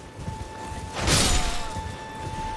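A sword slashes with a sharp burst.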